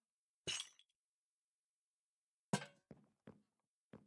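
A small object is set down with a soft knock.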